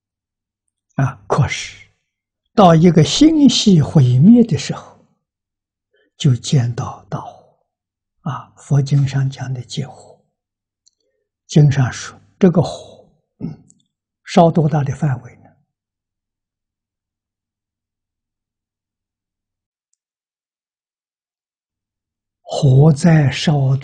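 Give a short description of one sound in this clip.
An elderly man speaks calmly into a close microphone, in short phrases with pauses.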